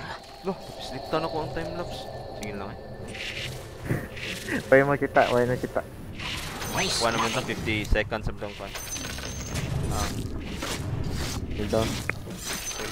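Weapons clash and strike during a fantasy fight.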